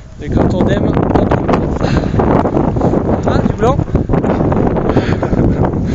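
A man talks outdoors in the wind.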